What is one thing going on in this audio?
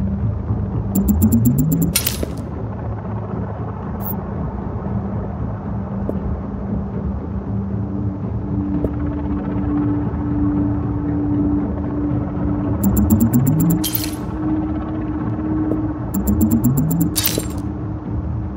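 A rising electronic whoosh ends in a bright crackling burst.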